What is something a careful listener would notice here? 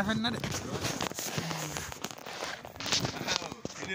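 Footsteps crunch on sandy ground.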